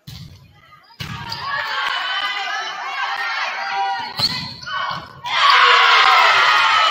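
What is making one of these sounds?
A crowd in the stands cheers and claps.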